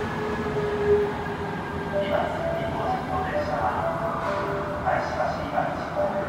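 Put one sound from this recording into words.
A subway train rumbles as it approaches along the track.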